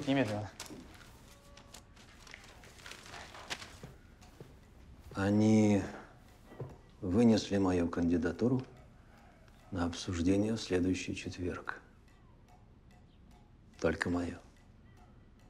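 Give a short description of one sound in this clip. An older man speaks in a low, firm voice.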